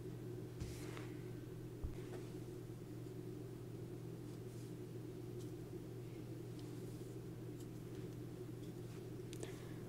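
A crochet hook softly rustles and ticks through yarn.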